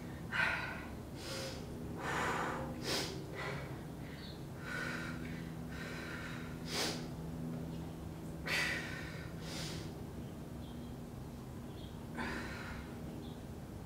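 A young woman breathes out sharply in a steady rhythm.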